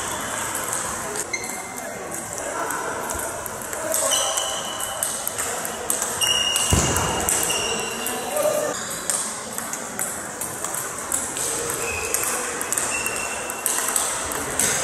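A table tennis ball clicks rapidly back and forth off paddles and a table in an echoing hall.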